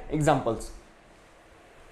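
A man speaks briefly and calmly through a microphone.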